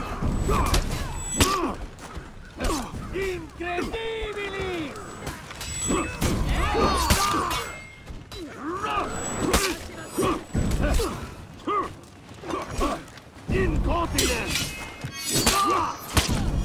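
Swords clash and clang in combat.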